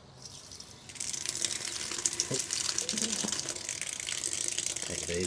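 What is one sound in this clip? Water pours and splashes onto a pipe.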